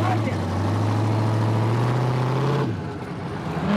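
A sports car engine idles loudly nearby, then cuts off.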